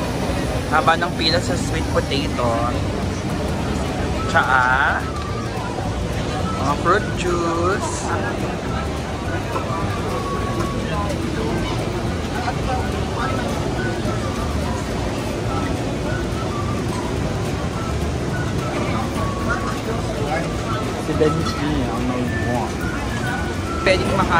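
A crowd murmurs steadily all around in a busy outdoor market.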